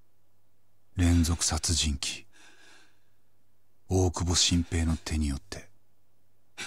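A man speaks in a low, tense voice, close by.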